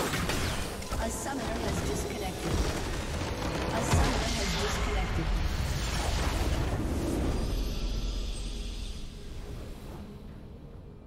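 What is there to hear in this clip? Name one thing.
A large crystal explodes with a loud, deep rumbling blast that slowly fades away.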